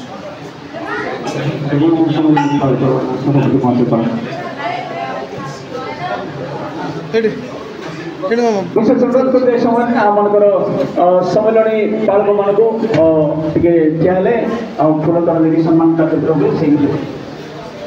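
Men talk to each other up close.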